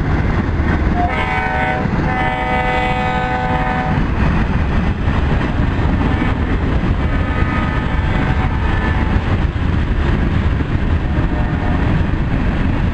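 A train horn blows in long, loud blasts.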